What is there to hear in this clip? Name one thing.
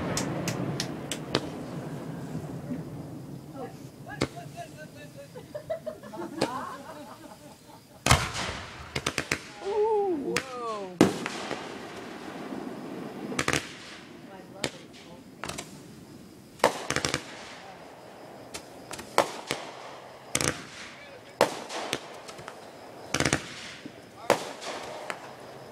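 Fireworks burst with loud bangs and crackles, outdoors.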